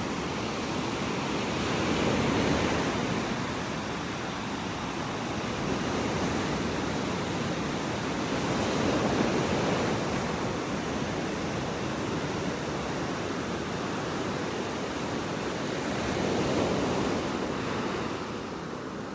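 Small waves break and wash up onto the shore, swelling and fading in turn.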